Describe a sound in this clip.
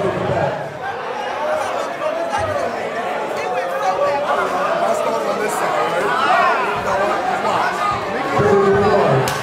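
A man speaks loudly and with animation into a microphone in a large echoing hall.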